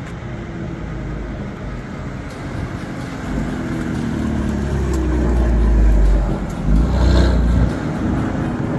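A car engine rumbles as a sports sedan drives slowly past.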